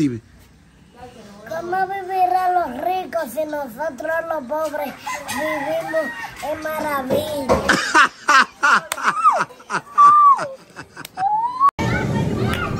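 A young child sings in a high voice close by.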